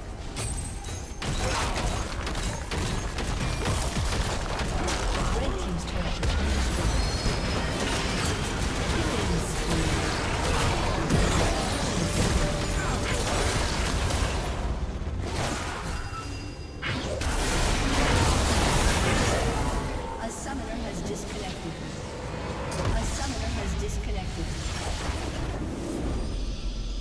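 Game battle effects clash and explode with magic blasts.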